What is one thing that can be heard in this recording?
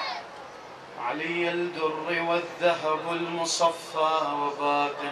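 A man chants in a strong, sustained voice through a microphone.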